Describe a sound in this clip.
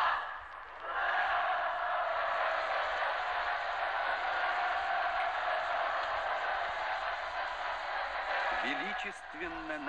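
A large crowd cheers and sings in a steady roar.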